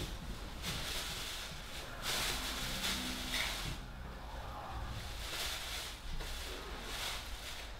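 A woman sobs quietly.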